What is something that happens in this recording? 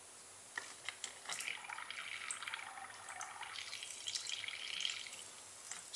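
Small pieces clatter and rattle into a metal pot.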